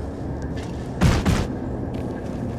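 A large creature lunges with a heavy whoosh.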